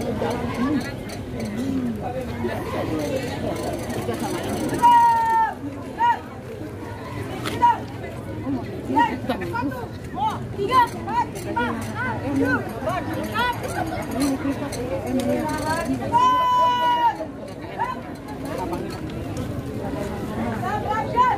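A man shouts marching commands outdoors.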